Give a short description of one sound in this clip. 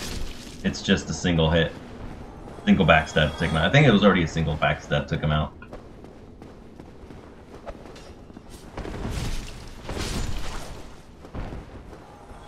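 Metal swords swing and clang in a fight.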